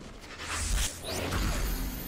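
A sword slashes with a sharp whoosh.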